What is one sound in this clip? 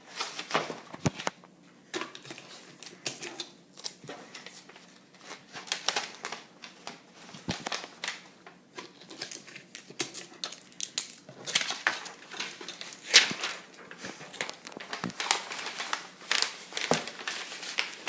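Paper taps and thumps on a hard countertop.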